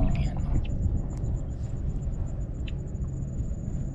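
Leaves rustle softly as fingers handle them.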